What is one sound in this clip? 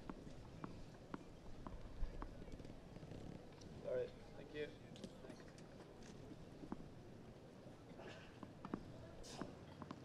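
A tennis ball bounces softly on grass.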